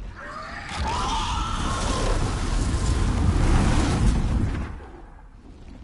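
A dragon's fiery breath roars and crackles nearby.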